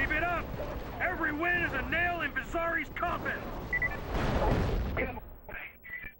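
A short triumphant music fanfare plays.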